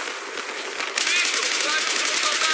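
A rifle fires rapid bursts of shots close by.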